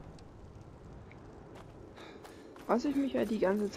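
Footsteps tread on grass and gravel.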